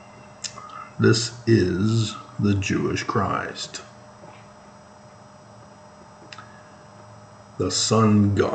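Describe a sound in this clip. A middle-aged man speaks calmly and close to a microphone, pausing between phrases.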